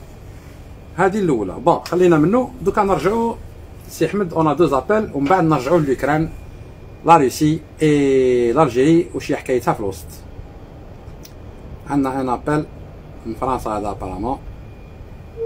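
An older man speaks with animation, close to a microphone.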